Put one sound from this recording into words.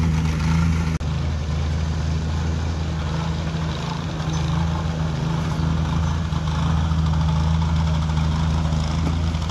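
A shovel scrapes wet mortar in a tub.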